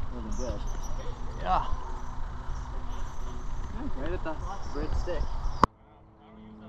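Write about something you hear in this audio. Men talk casually outdoors.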